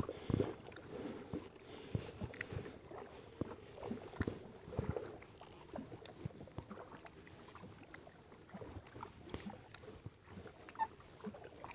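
Kayak paddles dip and splash in calm water.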